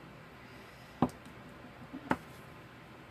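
A wooden spoon knocks down onto a table.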